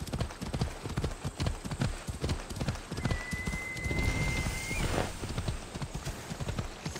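Horse hooves thud rhythmically on a dirt path.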